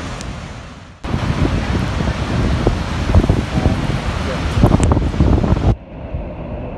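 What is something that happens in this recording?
Wind buffets the microphone in gusts.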